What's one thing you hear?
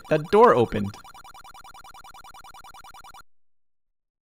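Rapid electronic beeps tick from a retro video game as text is typed out.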